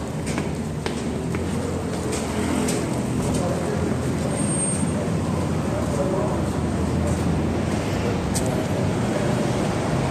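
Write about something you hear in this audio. Road traffic rumbles with cars passing.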